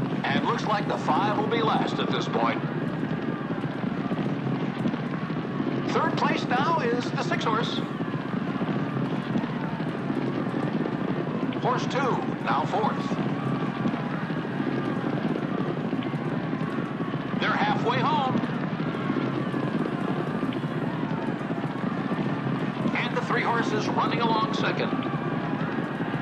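Horses gallop with drumming hooves on turf.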